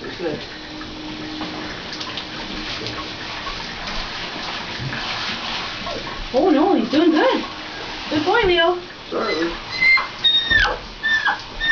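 Water sprays from a shower head into a bathtub.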